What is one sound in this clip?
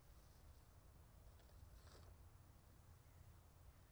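Hands rummage through a leather bag with soft rustling.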